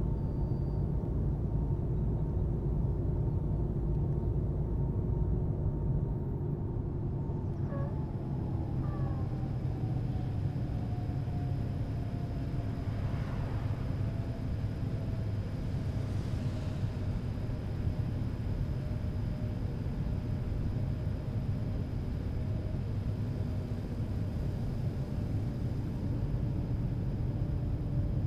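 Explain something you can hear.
A bus engine hums steadily and lowers slightly in pitch as the bus slows.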